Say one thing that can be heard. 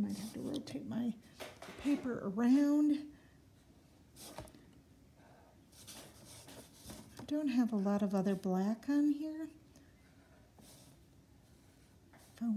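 A felt marker scratches softly across paper.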